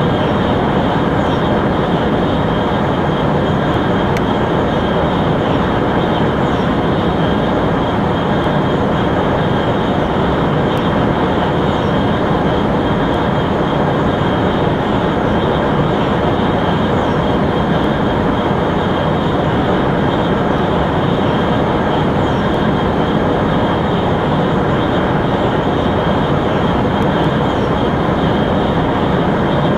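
A high-speed train hums and roars steadily along the tracks.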